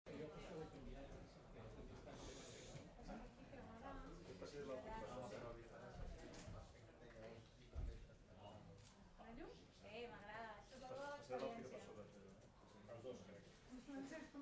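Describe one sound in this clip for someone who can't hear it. Several men and women chatter at once in a room with some echo.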